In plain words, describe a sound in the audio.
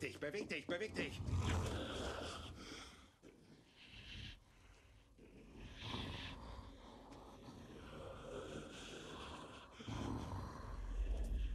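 A man speaks in a low, menacing voice close by.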